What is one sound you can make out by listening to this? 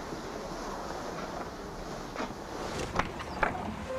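A box is set down on a table with a thud.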